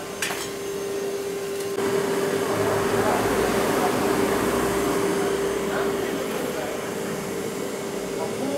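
A construction machine hums steadily nearby.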